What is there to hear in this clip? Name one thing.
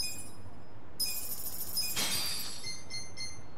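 A bright chime rings out when a purchase is confirmed.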